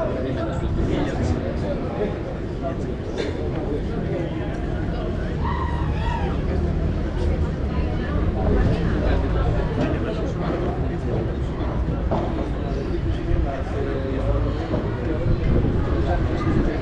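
Padel rackets hit a ball with sharp pops.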